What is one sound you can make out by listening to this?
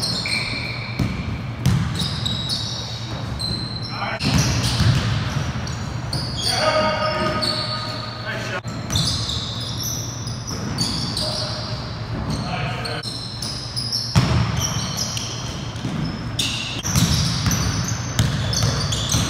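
A basketball bounces on a hard floor with thuds.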